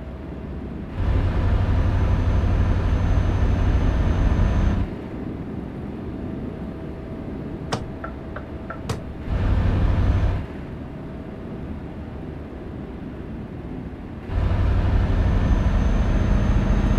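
Tyres drone loudly and deeply on the road at times.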